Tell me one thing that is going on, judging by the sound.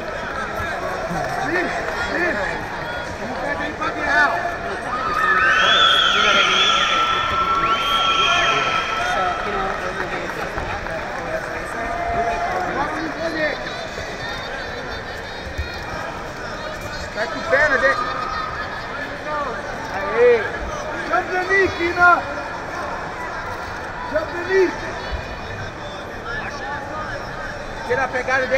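Men in the crowd shout loudly.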